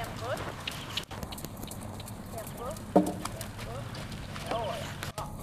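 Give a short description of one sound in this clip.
A horse trots with soft hoofbeats on sand.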